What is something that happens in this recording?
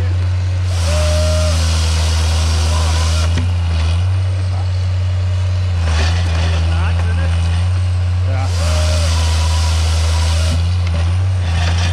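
A heavy diesel engine rumbles steadily close by and revs up in bursts.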